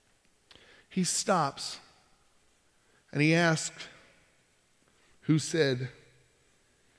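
A man speaks expressively into a microphone, with long pauses.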